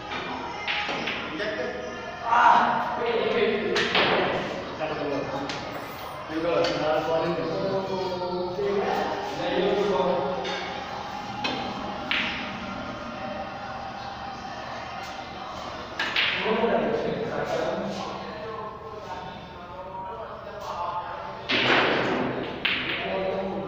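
Snooker balls click sharply as a cue strikes.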